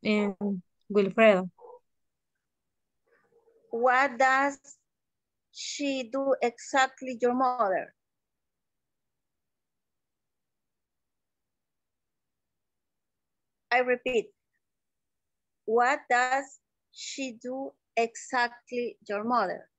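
A woman speaks through an online call in short phrases with pauses.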